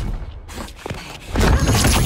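Heavy footsteps stomp on a rubble-strewn floor.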